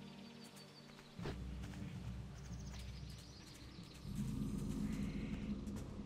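Footsteps run through grass.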